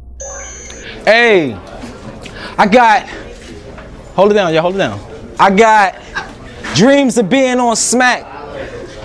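A young man raps loudly and forcefully into a microphone.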